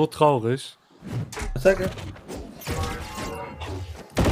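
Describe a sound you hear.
Blows and magic blasts clash in a fight.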